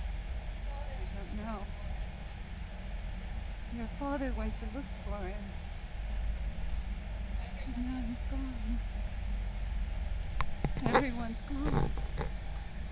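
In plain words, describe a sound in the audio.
A young woman speaks quietly and sadly.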